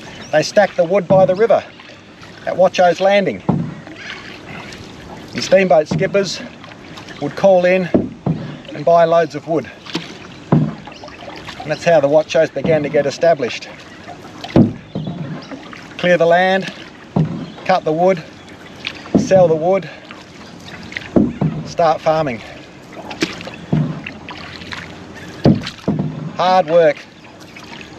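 A canoe paddle splashes and dips into water.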